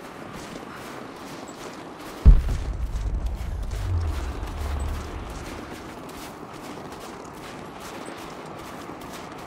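Footsteps run through snow.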